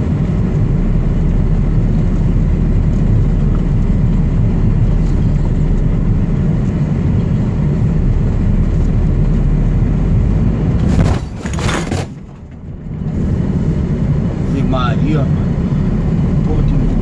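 A vehicle's engine rumbles steadily while driving along a road.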